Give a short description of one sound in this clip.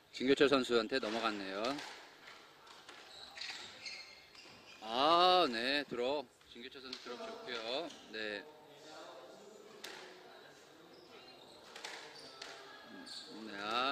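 A squash ball smacks off rackets and walls in an echoing court.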